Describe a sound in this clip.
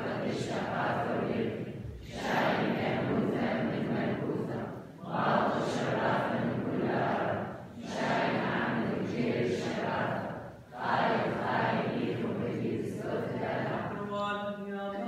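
A crowd of people recite prayers together in unison in a large echoing hall.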